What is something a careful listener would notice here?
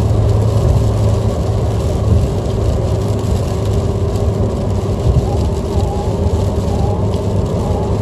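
Windscreen wipers swish across the glass.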